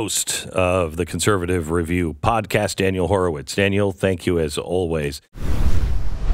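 A middle-aged man speaks steadily and close into a microphone.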